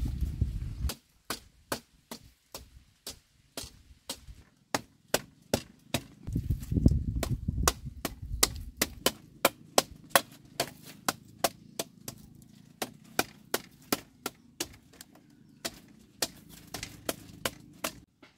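A wooden mallet knocks bamboo slats into the ground with sharp, regular blows.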